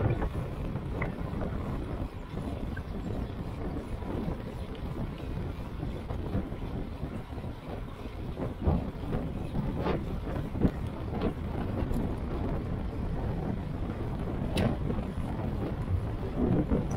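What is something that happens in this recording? Wind rushes steadily past a fast-moving bicycle.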